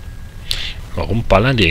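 A man speaks briefly into a microphone, close up.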